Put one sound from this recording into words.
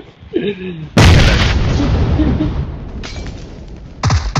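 An explosion booms loudly, followed by a roaring rumble.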